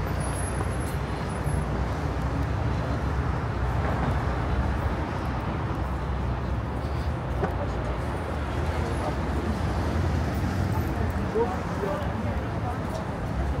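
City traffic hums steadily nearby.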